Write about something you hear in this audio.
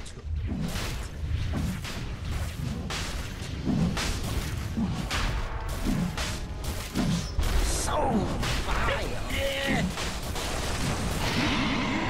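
Game combat effects clash and burst repeatedly.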